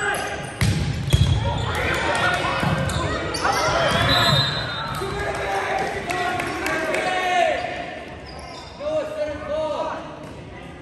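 Sneakers squeak on a wooden gym floor.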